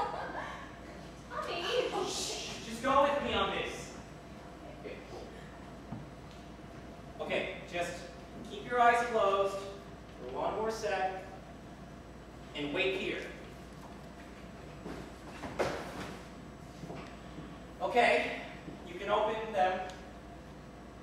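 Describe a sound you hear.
A young woman speaks with emotion, in a hall.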